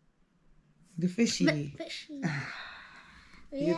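A woman laughs close by.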